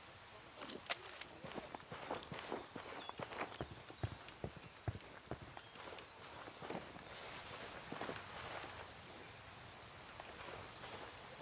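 Tall grass rustles and swishes as someone pushes through it.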